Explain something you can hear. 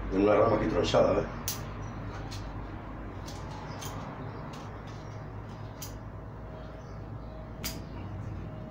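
Pruning shears snip through small branches.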